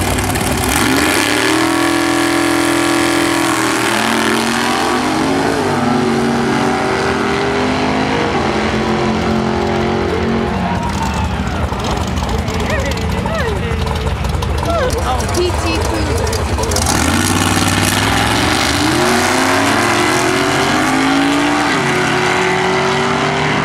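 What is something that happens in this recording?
Racing car engines roar and rev hard as they accelerate away.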